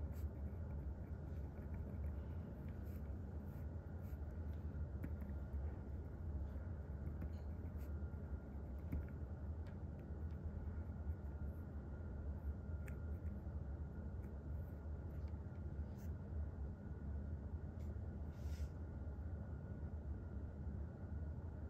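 A pencil scratches softly across paper.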